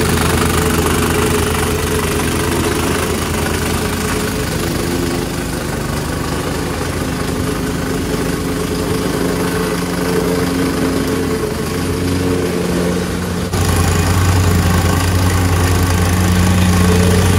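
A plate compactor engine runs loudly with a steady drone.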